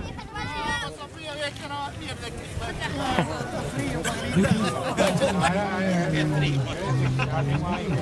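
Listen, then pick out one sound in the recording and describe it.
A crowd of men and women cheers and shouts close by.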